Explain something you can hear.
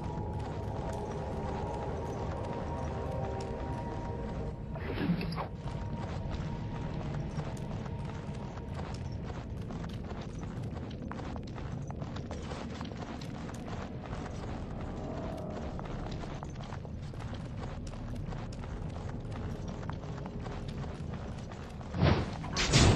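Footsteps thud steadily on a stone floor.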